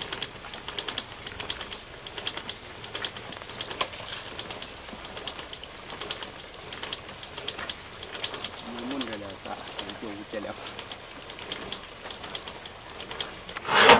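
Water trickles from a pipe.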